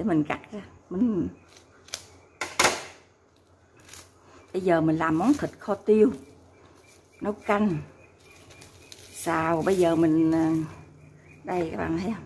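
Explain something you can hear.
Plastic wrap crinkles as it is peeled off by hand.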